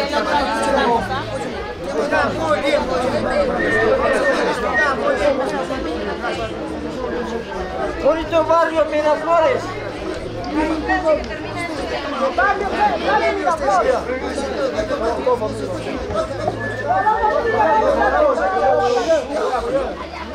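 A crowd of men and women talk and call out loudly all around, close by.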